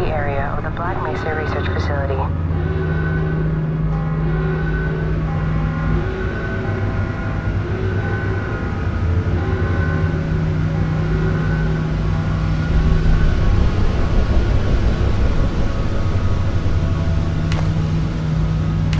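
A rail car hums and rumbles steadily as it rides along a track.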